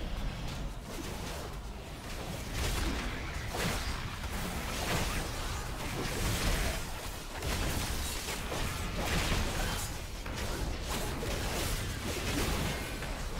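Game spell effects whoosh and crackle in rapid bursts.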